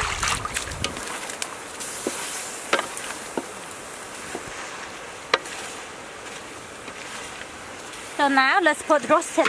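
Meat sizzles in a hot pan.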